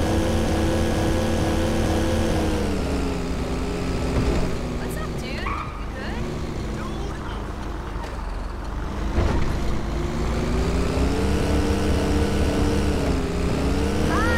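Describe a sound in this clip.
A bus engine hums and revs, rising and falling in pitch.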